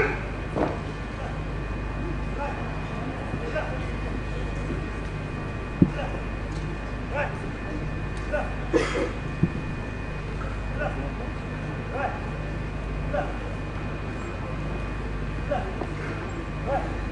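A man speaks through loudspeakers with an echo.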